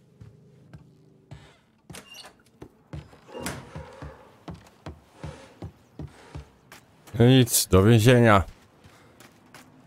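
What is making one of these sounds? Footsteps thud on wooden stairs and gravel.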